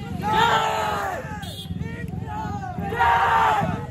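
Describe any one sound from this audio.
A young man shouts excitedly close by.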